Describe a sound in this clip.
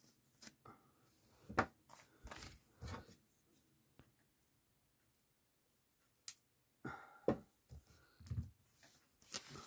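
A folding knife's blade clicks open and shut.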